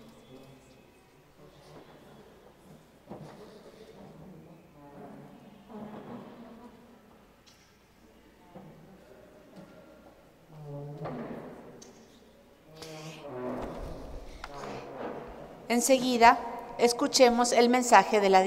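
A woman talks quietly nearby.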